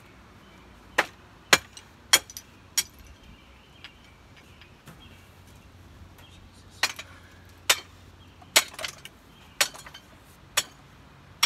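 Pieces of wood knock and clatter as a boy pulls them from a pile.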